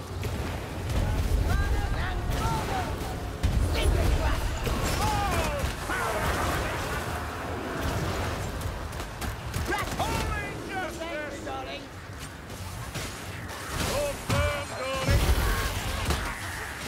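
Explosions boom heavily, again and again.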